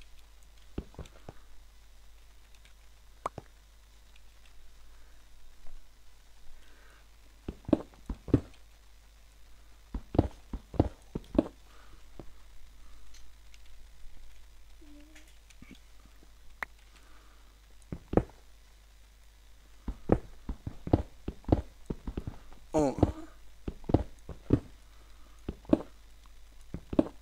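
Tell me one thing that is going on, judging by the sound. A pickaxe chips and breaks stone blocks in short bursts.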